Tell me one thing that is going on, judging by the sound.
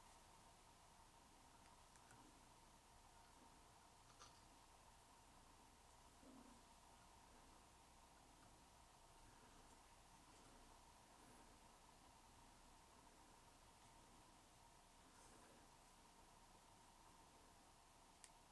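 Thread rasps softly as it is wound tightly around a hook.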